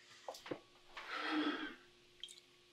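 A man gulps from a bottle.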